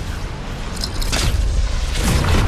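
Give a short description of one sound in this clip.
A loud whoosh bursts out.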